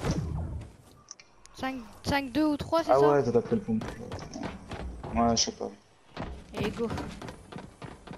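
Footsteps clatter quickly up wooden stairs.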